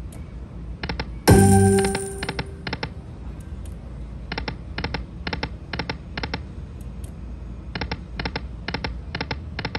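A slot machine plays quick chiming reel-stop sounds in a steady rhythm.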